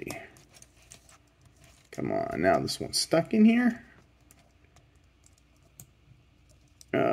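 Small plastic parts of a toy click and creak as they are turned by hand.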